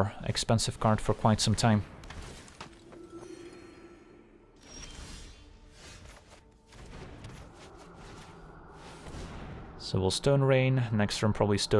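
A magical whoosh sweeps past as a spell streaks across the board.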